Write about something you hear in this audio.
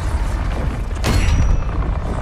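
A loud blast bursts once.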